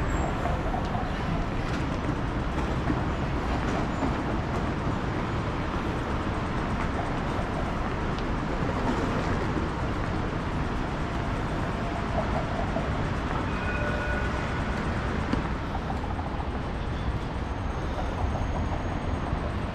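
City traffic hums steadily in the distance.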